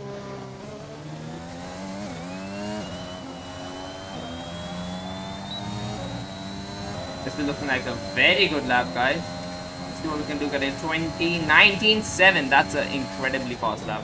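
A racing car engine screams at high revs, climbing in pitch and dropping briefly with each gear change.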